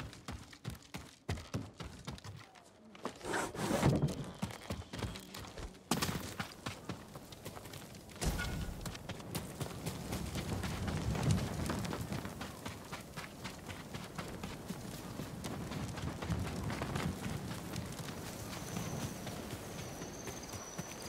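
Footsteps thud quickly on wood and then on soft ground.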